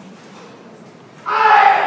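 A karate competitor shouts a loud kiai.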